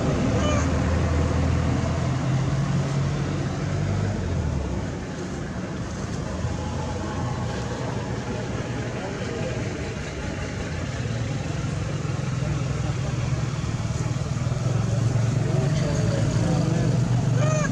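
A baby monkey squeaks faintly.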